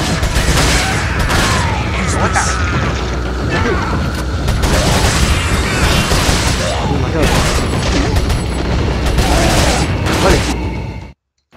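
Gunshots fire rapidly, one after another.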